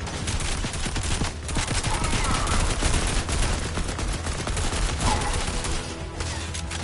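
Rapid gunfire crackles from a video game.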